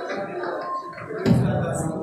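An elderly man speaks into a microphone.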